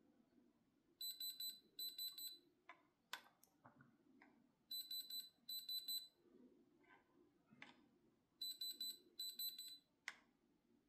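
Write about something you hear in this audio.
An electronic tester beeps in quick pairs of high pulsing tones.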